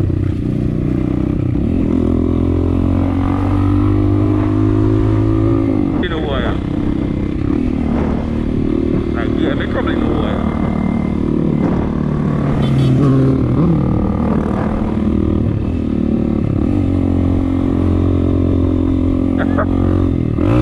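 A motorcycle engine hums and revs as the bike rides along.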